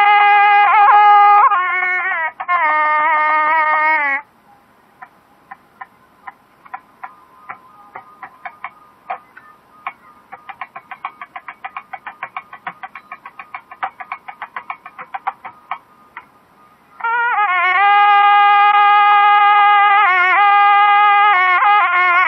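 A shehnai plays a loud, reedy melody with long held notes.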